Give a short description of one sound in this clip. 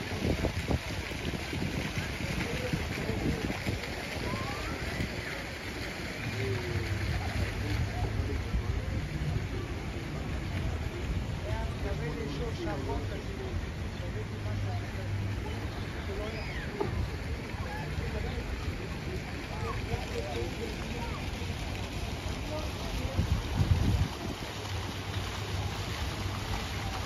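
Voices of people chatter in a busy open square outdoors.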